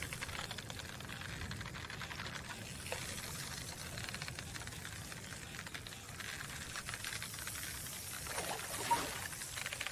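A fishing reel clicks as the line is wound in.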